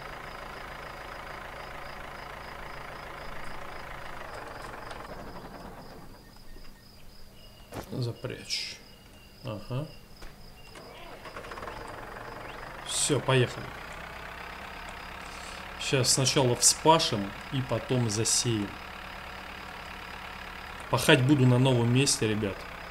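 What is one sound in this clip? A tractor engine runs with a steady drone.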